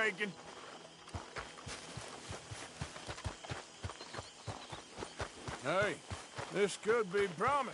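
A horse's hooves clop at a steady walk.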